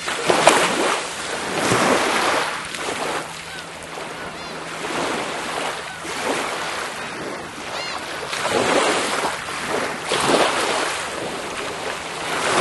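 Small waves wash gently onto a shell-covered shore and draw back in a slow rhythm.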